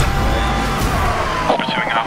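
A police siren wails nearby.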